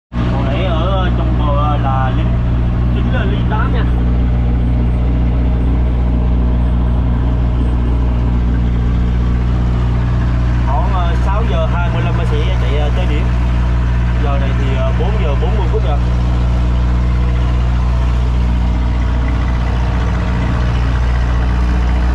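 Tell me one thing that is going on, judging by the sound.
A boat engine drones steadily and low throughout.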